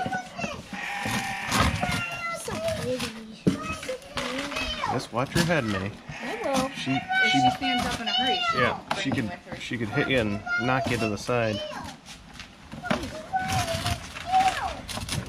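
A goat munches feed from a bucket.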